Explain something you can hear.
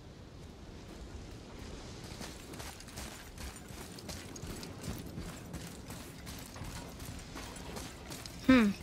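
Heavy footsteps thud and creak on wooden planks.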